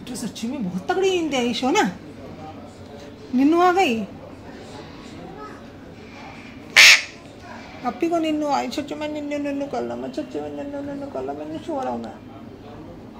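A parrot chatters and squawks loudly close by.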